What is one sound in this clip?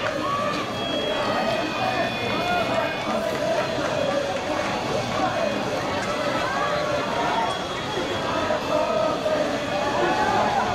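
Young women chat and call out nearby, with many voices overlapping outdoors.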